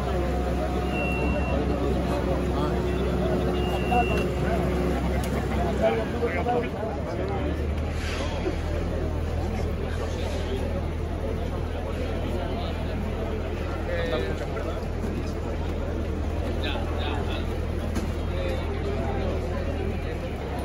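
A fire engine idles nearby with a steady low rumble.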